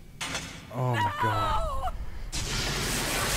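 A young woman cries out in alarm.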